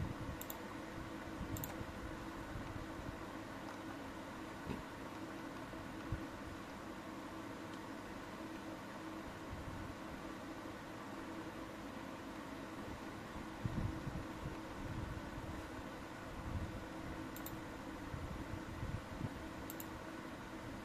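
Thumbs click buttons on a handheld game controller.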